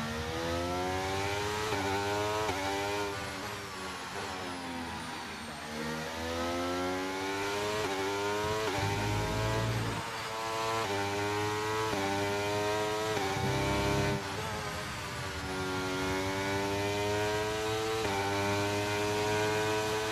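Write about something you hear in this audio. A racing car engine revs high, rising in pitch and dropping with each gear change.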